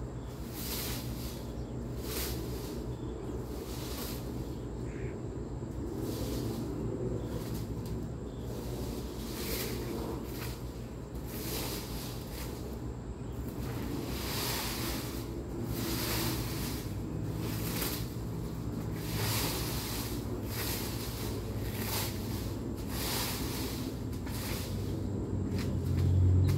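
A rake scrapes and rustles through dry leaves.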